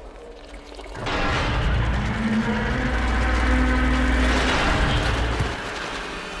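A heavy metal door slides open with a loud, deep rumble.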